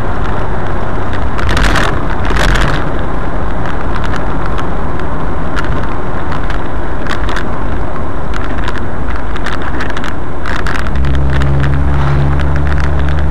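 Raindrops tap on a car windshield.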